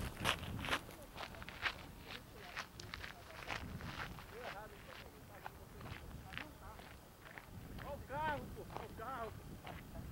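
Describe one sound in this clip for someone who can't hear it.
Footsteps crunch on gravel close by and fade into the distance.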